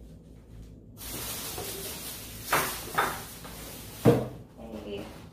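A plastic bag rustles and crinkles loudly.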